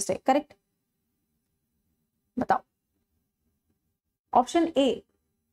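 A young woman speaks clearly into a close microphone, in short bursts with pauses.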